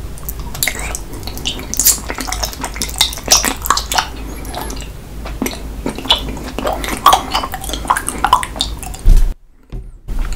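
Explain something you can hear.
A man slurps and sucks jelly noisily up close.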